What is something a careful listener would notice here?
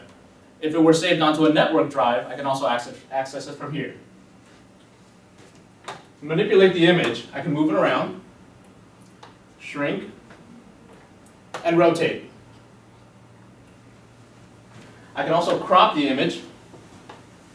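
A man speaks calmly and clearly into a microphone in bursts.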